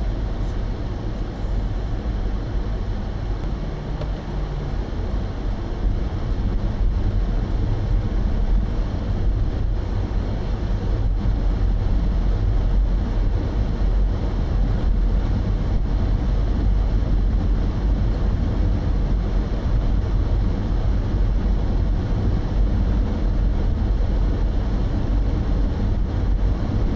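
Tyres rumble steadily on a paved road.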